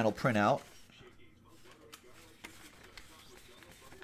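A sheet of paper rustles in a hand.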